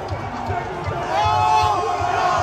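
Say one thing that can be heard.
Fans nearby cheer and shout excitedly as the crowd roars louder.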